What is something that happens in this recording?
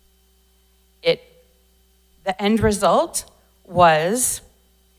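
A middle-aged woman speaks into a microphone in short bursts, heard through a loudspeaker system.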